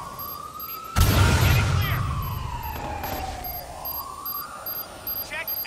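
An electric blast bursts with a loud crackling hum.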